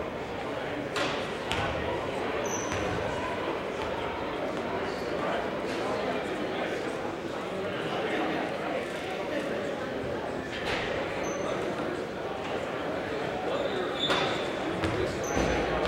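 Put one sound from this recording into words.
A crowd murmurs and chatters throughout a large echoing gym.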